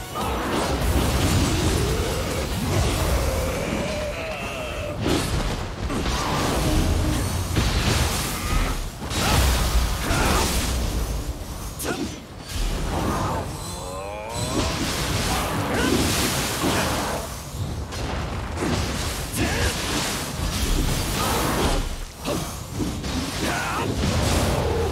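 Sword blows clash and strike again and again.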